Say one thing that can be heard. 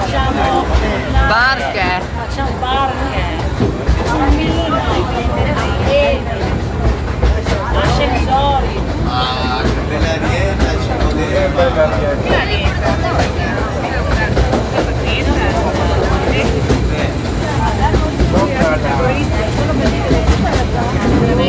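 Men and women chatter with each other nearby.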